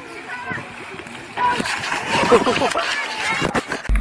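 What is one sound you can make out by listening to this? A person splashes into a pool.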